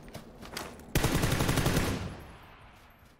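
A rifle fires a loud rapid burst.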